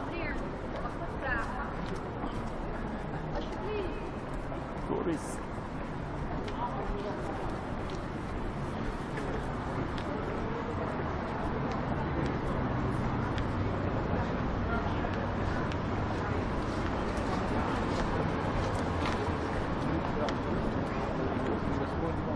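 A steady low hum of city traffic fills the air outdoors.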